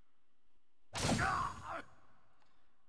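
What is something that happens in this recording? Blasts and slashing hits burst out in quick succession.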